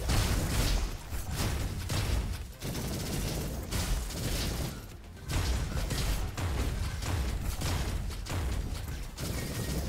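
Guns fire in rapid bursts with loud bangs.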